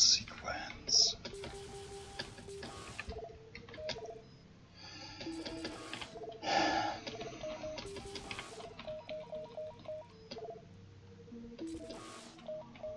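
Short electronic beeps and blips chirp in quick succession.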